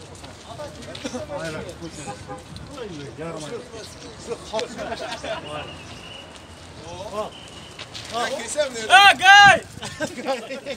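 Several men talk over one another outdoors nearby.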